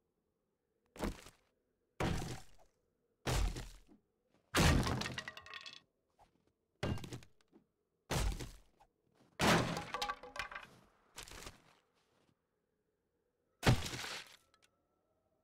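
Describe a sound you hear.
A hammer strikes wooden boards with heavy thuds.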